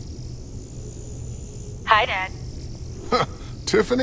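A small hovering drone hums.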